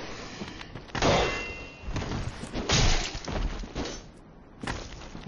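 A sword clashes and strikes in a loud fight.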